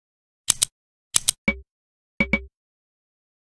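Short sharp clicks of a game menu sound in quick succession.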